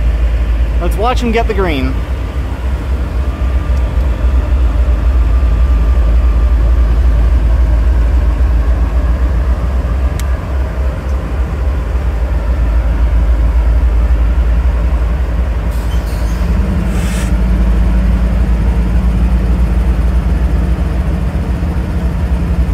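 A freight train's diesel locomotives rumble loudly close by.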